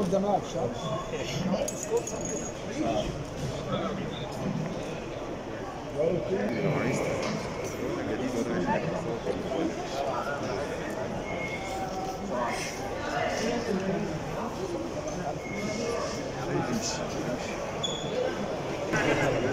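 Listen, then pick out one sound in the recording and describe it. Several men and women talk at once close by, in a large echoing hall.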